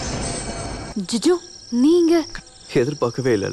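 A woman speaks sharply, close by.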